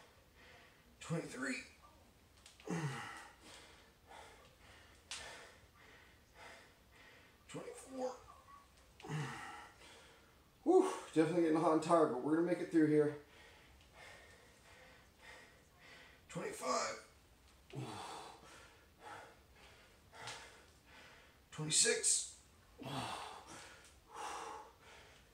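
A man breathes out hard with each squat, close by.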